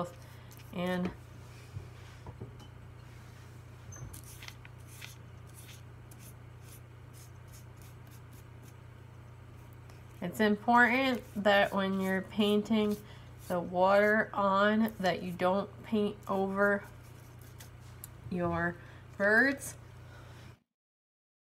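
A brush dabs and swishes softly on paper.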